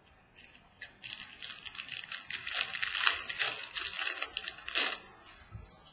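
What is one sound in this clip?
Plastic card wrappers crinkle and rustle in someone's hands.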